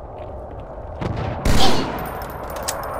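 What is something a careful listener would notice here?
A rifle fires a few loud shots.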